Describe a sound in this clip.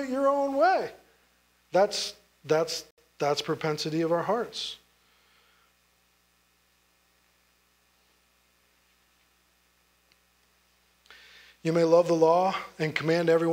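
A man speaks with emphasis through a microphone, pausing between phrases.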